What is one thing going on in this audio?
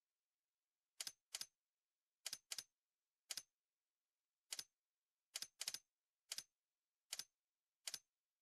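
Game menu clicks tick quickly, one after another, as a setting is adjusted.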